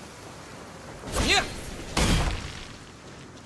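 A bright magical blast whooshes and crackles.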